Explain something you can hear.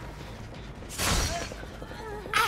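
A heavy weapon whooshes through the air.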